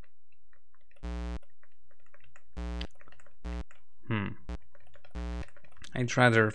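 An old computer game sounds short, harsh buzzing beeps.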